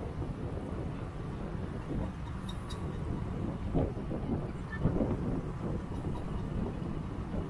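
Wind rumbles loudly against a microphone outdoors.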